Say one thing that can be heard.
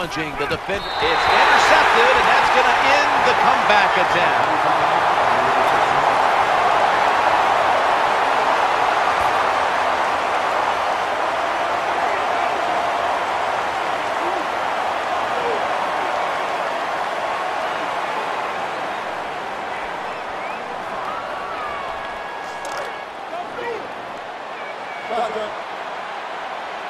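A large stadium crowd roars and cheers steadily, slowly fading.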